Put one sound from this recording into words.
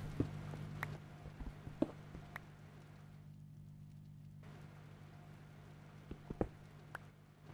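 A pickaxe chips at stone with short, sharp knocks.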